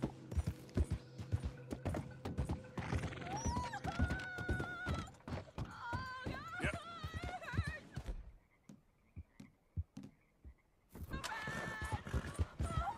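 A horse's hooves clop quickly on wooden planks and dirt.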